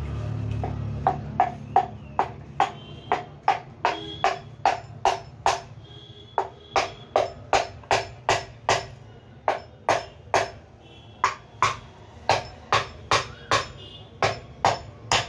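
A wooden mallet knocks repeatedly on a metal power tool housing.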